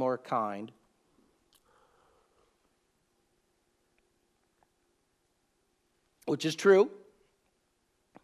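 An older man speaks calmly and close up.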